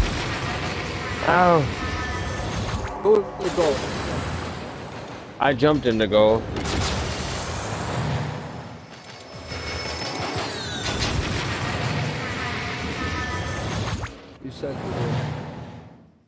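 A young man speaks with animation into a close headset microphone.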